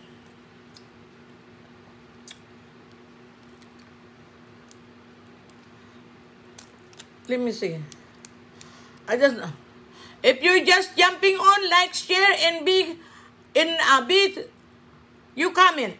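Crawfish shells crack and crunch as they are peeled.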